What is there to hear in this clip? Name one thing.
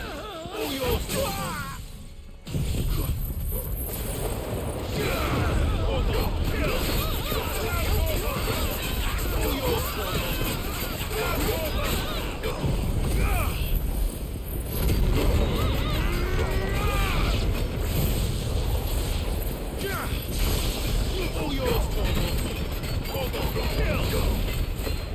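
Heavy impacts and magic blasts boom and crackle in a rapid fight.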